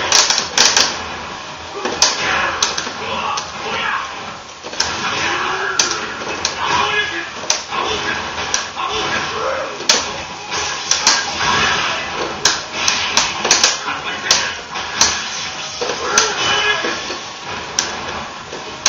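Punches and kicks land with sharp, repeated smacks.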